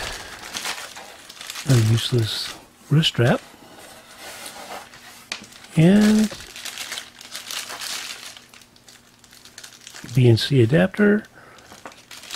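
Plastic wrapping crinkles and rustles in hands.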